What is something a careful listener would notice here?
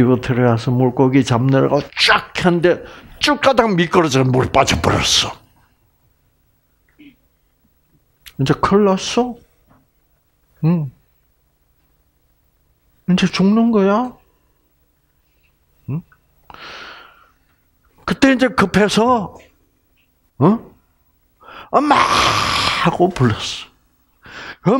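An elderly man speaks with animation through a headset microphone, pausing often.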